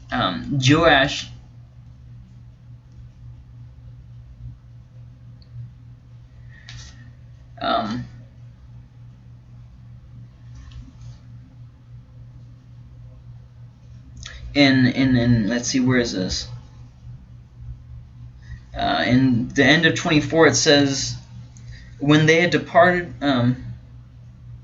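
A man speaks calmly in short bursts over an online call.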